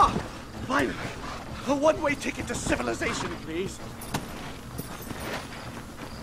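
A horse's hooves thud on snowy ground.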